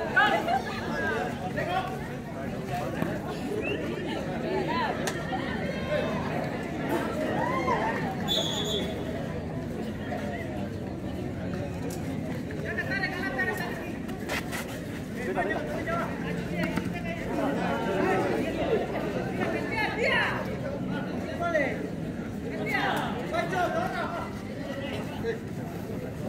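A crowd of spectators chatters and shouts throughout.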